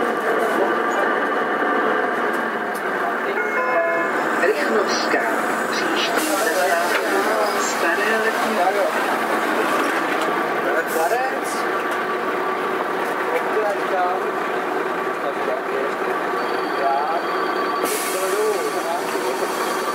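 A bus engine runs close by.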